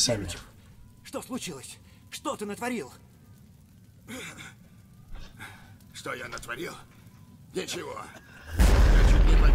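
A man groans and talks in pain close by.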